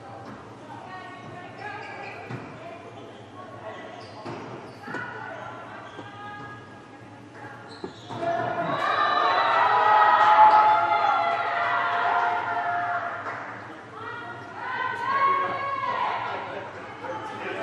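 Young women shout and call out to each other across an echoing hall.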